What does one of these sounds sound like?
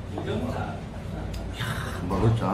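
A man slurps noodles noisily.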